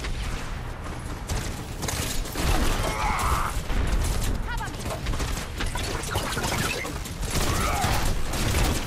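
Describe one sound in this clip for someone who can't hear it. Energy weapons fire in rapid bursts with zapping sounds.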